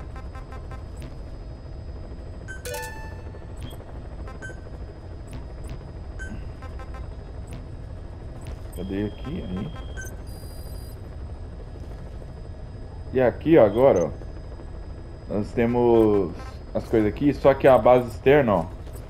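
Short electronic menu beeps and clicks sound now and then.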